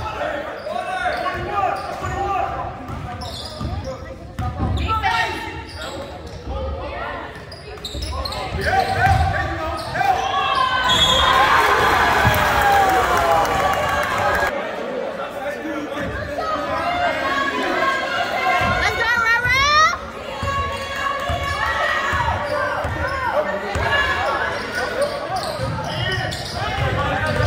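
A crowd of spectators chatters and cheers in a large echoing gym.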